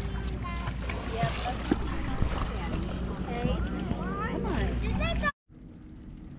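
Children splash and play in shallow water outdoors.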